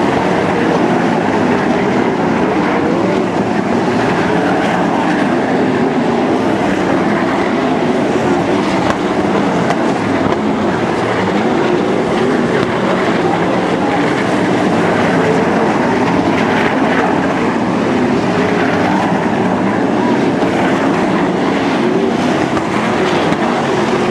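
Racing car engines roar loudly around a dirt track.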